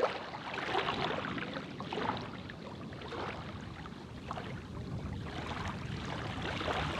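Shallow water laps and splashes gently at the shore.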